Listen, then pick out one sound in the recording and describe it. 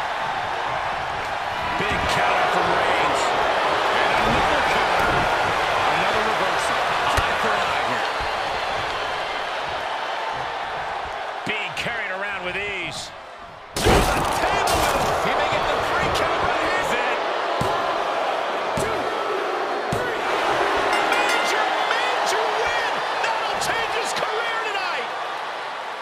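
A large crowd cheers and roars in a big arena.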